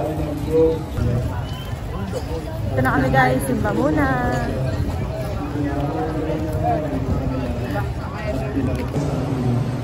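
A young woman talks with animation, close to the microphone.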